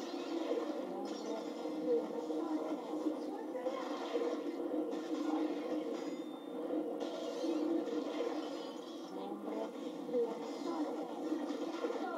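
Magical whooshes and bursts sound from a game.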